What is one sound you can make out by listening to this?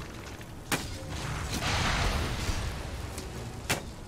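A magic blast whooshes and rumbles.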